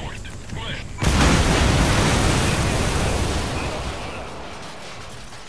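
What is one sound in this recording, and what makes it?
A loud explosion booms and rumbles, then slowly fades.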